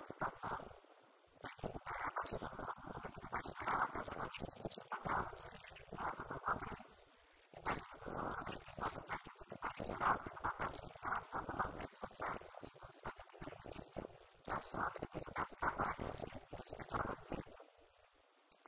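A woman talks calmly into a microphone, heard through a loudspeaker.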